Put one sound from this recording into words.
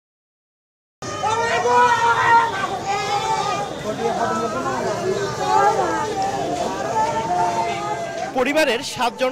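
A middle-aged woman wails and sobs loudly close by.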